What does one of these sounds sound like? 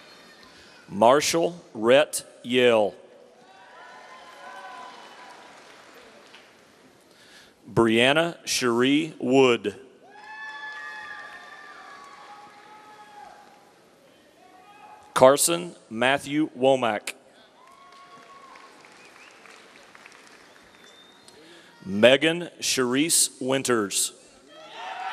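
A man announces names over a loudspeaker in a large echoing hall.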